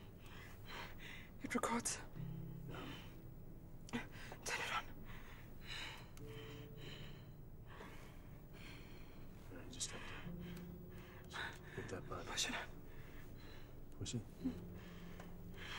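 A man speaks quietly to a woman.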